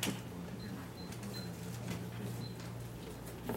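Papers rustle as a man handles them.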